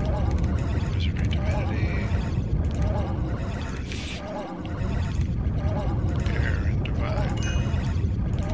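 Soft interface clicks sound as buttons are pressed.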